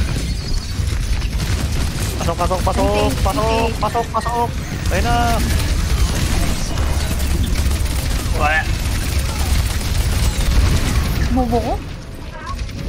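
A rapid-fire gun blasts in bursts.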